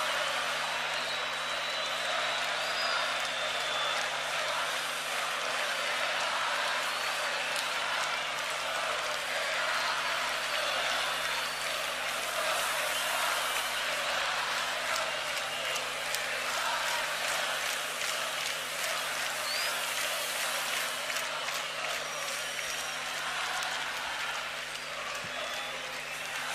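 People in a large stadium crowd whistle.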